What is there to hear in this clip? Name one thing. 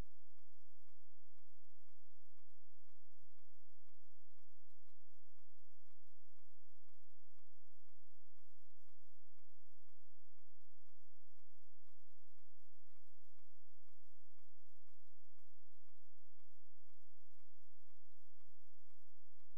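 Water trickles faintly through a pipe.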